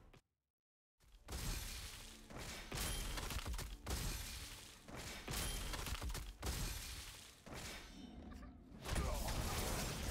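Game sound effects whoosh and crash as magic spells strike.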